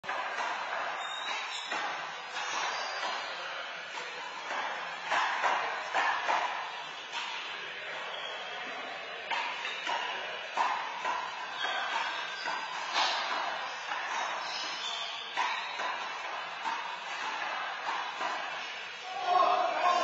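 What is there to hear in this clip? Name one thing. A handball smacks off the front wall of an echoing indoor court.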